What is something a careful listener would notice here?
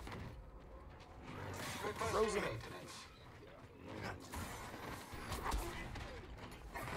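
A lightsaber hums and whooshes through the air.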